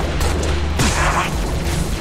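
A heavy blow lands with an electric crackle.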